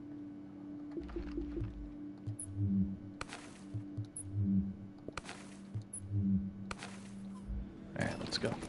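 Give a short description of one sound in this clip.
Soft interface clicks and chimes sound in quick succession.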